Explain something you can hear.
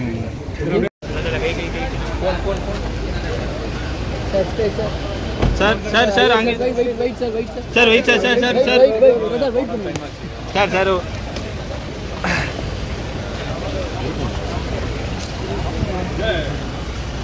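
Several men call out and talk loudly nearby, outdoors.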